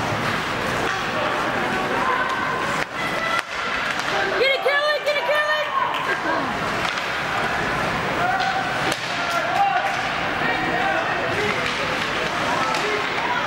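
A crowd of spectators chatters and shouts in an echoing hall.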